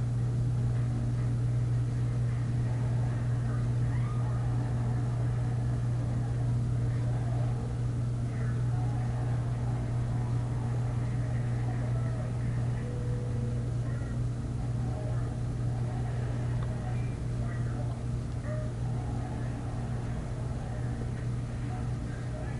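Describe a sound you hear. A young man blows and tries to whistle softly through pursed lips close by.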